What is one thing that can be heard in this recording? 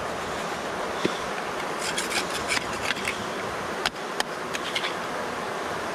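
Small stones scrape and click against rock.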